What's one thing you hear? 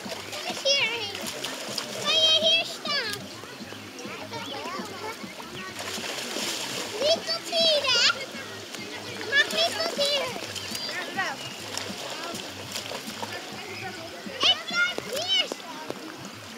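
Young children shriek and call out playfully nearby.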